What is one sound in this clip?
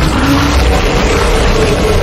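A flamethrower roars in a loud burst.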